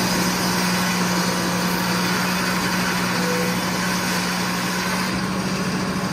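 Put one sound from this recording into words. A large circular saw whines as it cuts through a log.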